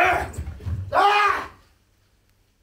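A man shouts sharply.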